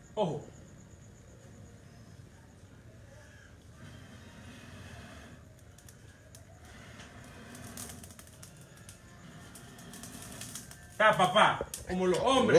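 Meat sizzles on a hot grill.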